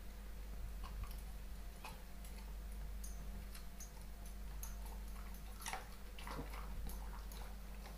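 A dog crunches and chews a treat up close.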